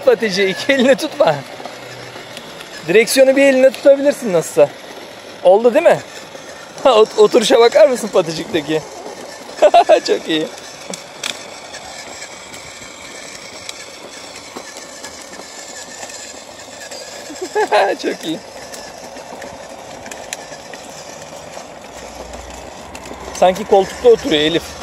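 A small electric toy motor whirs steadily.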